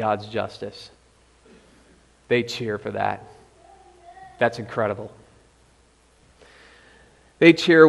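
A young man speaks calmly into a microphone, in short phrases with pauses, in a room with a slight echo.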